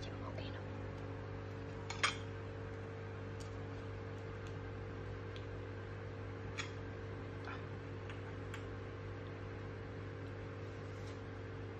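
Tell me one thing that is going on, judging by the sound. Chopsticks and a spoon clink against a bowl.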